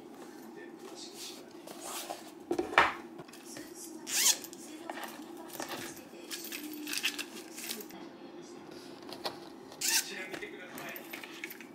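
A padded fabric case rustles as it is handled.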